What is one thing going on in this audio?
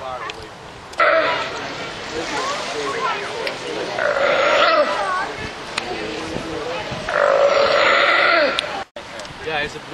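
Water splashes as a sea lion swims.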